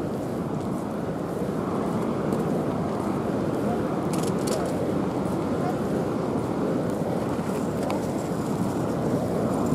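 Wind blows outdoors with a steady low rumble.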